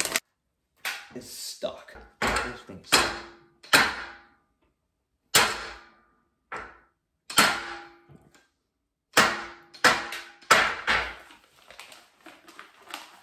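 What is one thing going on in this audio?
A metal barbell clanks and rings against a rack, again and again.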